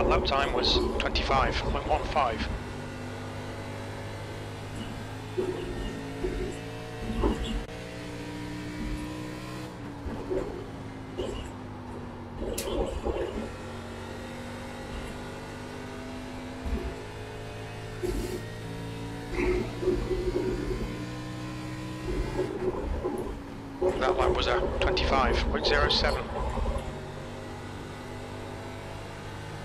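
A race car engine roars steadily, its pitch rising and falling through gear changes.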